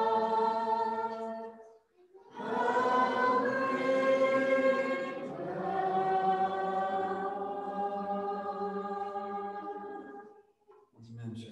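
A congregation sings together in a large room.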